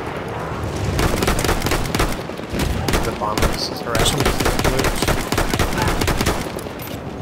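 A rifle fires several shots close by.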